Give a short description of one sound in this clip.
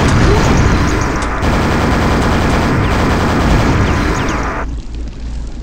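A shotgun fires in loud, repeated blasts.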